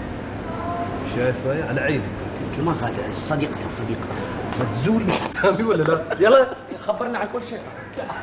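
Several men argue loudly and with animation, close by.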